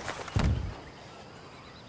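A loud explosion booms and quickly rumbles away.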